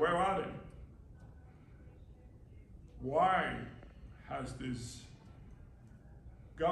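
A middle-aged man speaks into a microphone in short bursts with pauses, in an echoing room.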